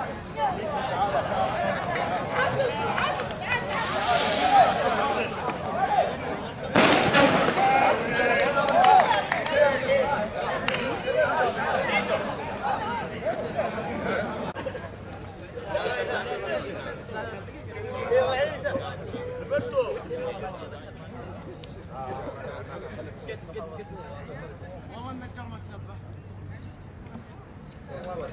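A crowd of men chatter and call out nearby, outdoors.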